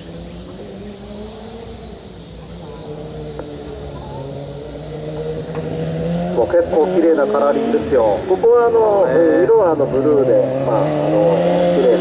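A racing car engine approaches, growing louder and revving sharply up and down.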